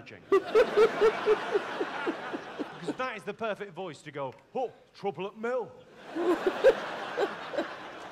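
A young woman laughs loudly and brightly.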